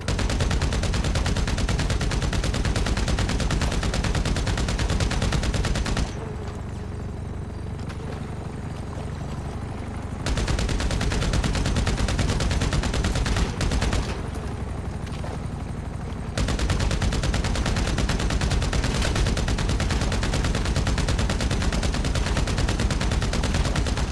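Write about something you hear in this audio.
A light helicopter's rotor thuds overhead.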